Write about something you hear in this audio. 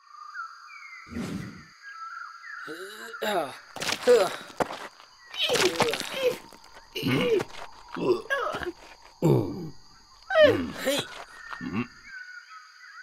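A young boy speaks in a startled, nervous voice.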